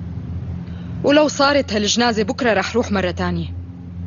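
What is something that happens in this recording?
A young woman speaks quickly and tensely, close by.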